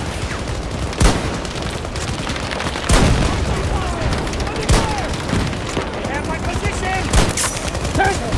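A rifle fires loud, sharp single shots.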